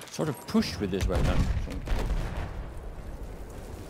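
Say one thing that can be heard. Explosions rumble and boom in the distance.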